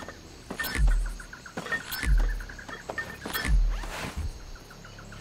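Gold bars clink and thud as they are grabbed and dropped into a bag, again and again.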